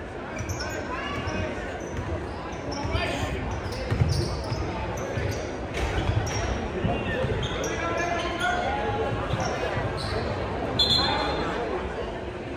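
A crowd of spectators cheers and shouts nearby.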